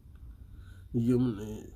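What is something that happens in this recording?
A man speaks through an online call.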